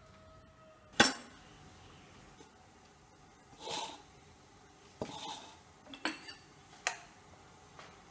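Metal utensils clank against each other.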